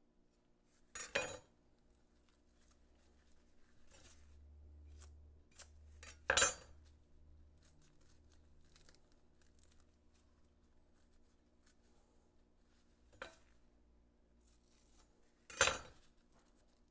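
A knife slices through an onion on a wooden board.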